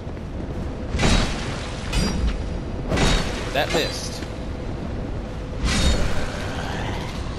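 Heavy blows thud and crash several times.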